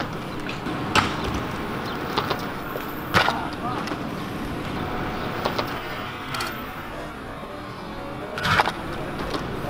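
A scooter deck knocks on concrete as it lands.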